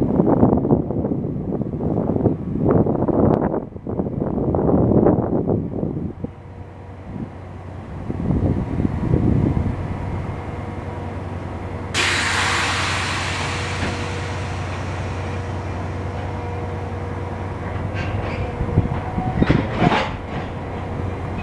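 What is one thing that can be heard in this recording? A train engine hums steadily nearby.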